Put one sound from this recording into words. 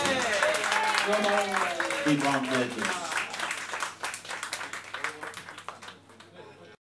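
A group of young men and women cheer and shout excitedly nearby.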